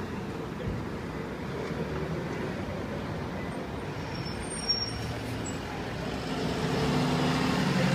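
A heavy truck engine rumbles, growing louder as it draws near.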